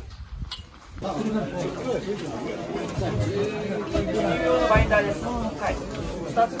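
Several men chat at once, nearby.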